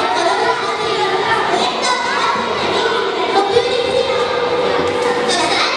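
A young girl sings into a microphone over a loudspeaker in an echoing hall.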